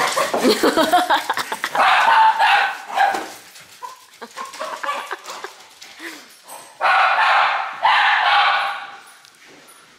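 Dogs bark excitedly up close.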